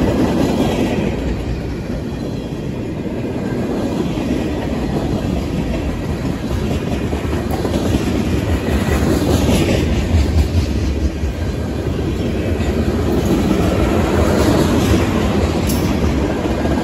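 A long freight train rumbles past close by, its wheels clattering and squealing on the rails.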